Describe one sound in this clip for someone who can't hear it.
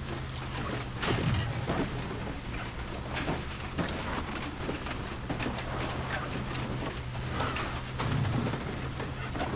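A car's body knocks and thumps over bumps.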